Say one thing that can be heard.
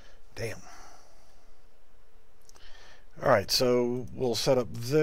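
A man speaks calmly into a headset microphone.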